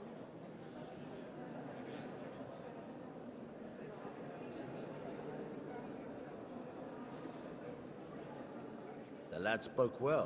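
A crowd murmurs and chatters in an echoing hall.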